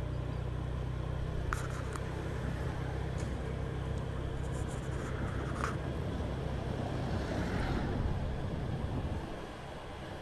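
A vehicle engine hums low and steady, then quiets down.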